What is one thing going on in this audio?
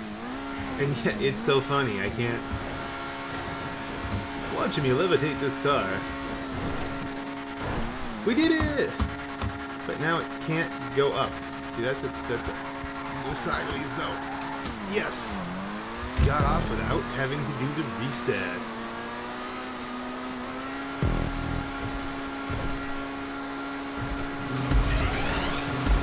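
A race car engine whines steadily at high revs.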